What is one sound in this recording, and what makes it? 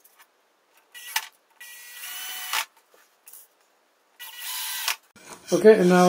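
A cordless drill whirs, driving screws.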